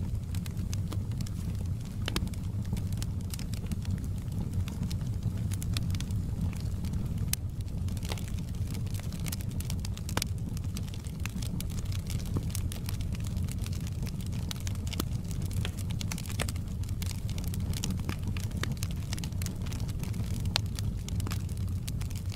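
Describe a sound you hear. Burning logs crackle and pop sharply.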